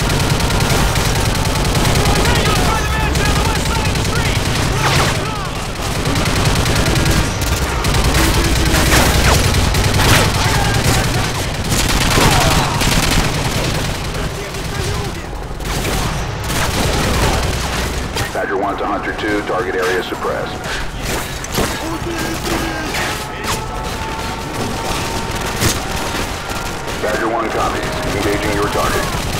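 Rifle gunfire cracks in rapid bursts.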